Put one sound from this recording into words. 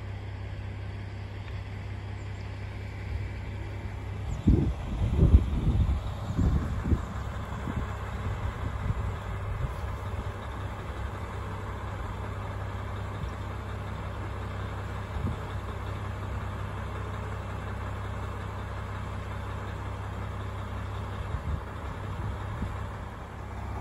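A diesel train engine idles nearby with a steady low rumble.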